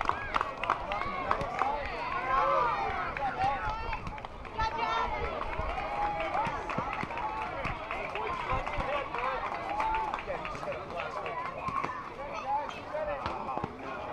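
Several children shout and call out across an open field, with many voices overlapping.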